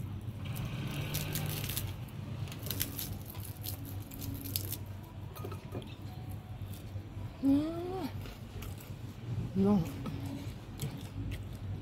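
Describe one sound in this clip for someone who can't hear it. Crispy fried fish skin crackles as fingers tear the fish apart.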